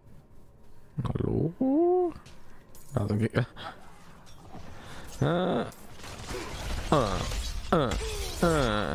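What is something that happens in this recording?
Spells and blows crash and burst in a fight.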